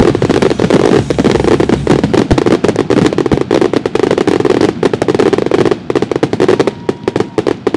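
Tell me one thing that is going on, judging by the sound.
Fireworks crackle and boom in a dense, loud barrage.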